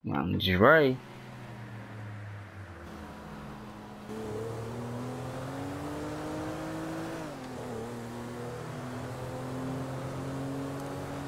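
A car engine hums steadily and revs up and down while driving.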